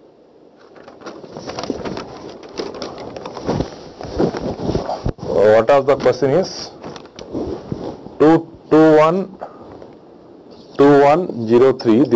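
A man lectures calmly, heard through a microphone.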